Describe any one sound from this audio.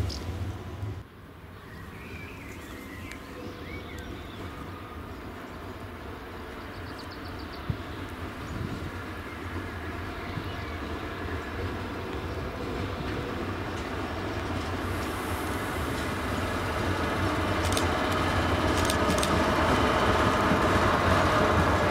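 A diesel locomotive rumbles and grows louder as it approaches.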